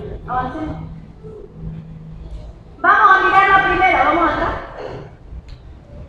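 A young woman speaks into a microphone through loudspeakers in an echoing hall.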